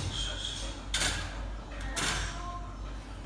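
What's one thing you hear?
A metal crate door rattles and clanks shut.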